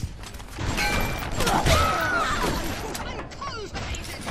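A machine gun fires a short burst of loud shots.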